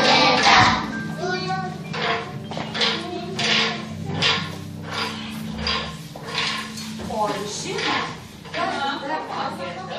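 Young children speak in clear, high voices nearby.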